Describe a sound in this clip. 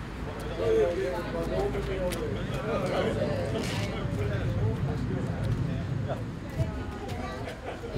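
Several women chat together nearby outdoors.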